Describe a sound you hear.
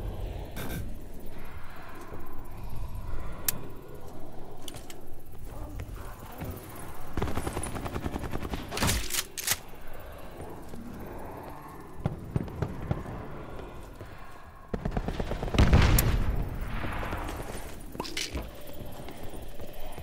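Footsteps run across a hard floor.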